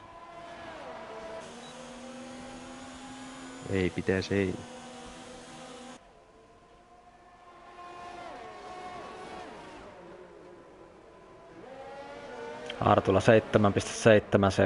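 Racing car engines whine at high revs, rising and falling as they shift gears.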